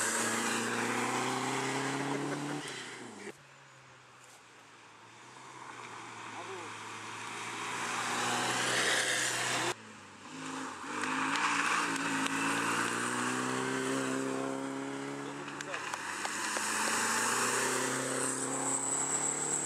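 Tyres hiss on the tarmac as cars race by.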